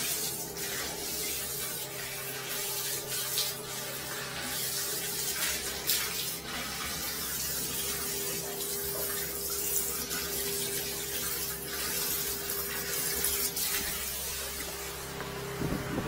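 Water sprays hard from a hose onto a tiled floor.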